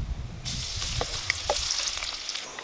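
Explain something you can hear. A wooden spatula scrapes and taps against a wok.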